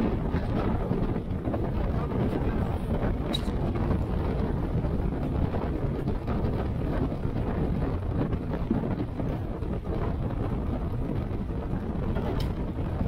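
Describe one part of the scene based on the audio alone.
Bicycle tyres hum on smooth tarmac.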